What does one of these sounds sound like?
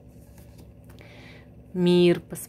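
Playing cards slide and rustle against each other.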